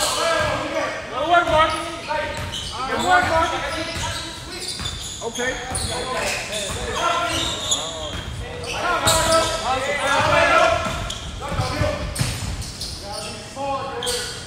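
Young people shout and cheer loudly in an echoing hall.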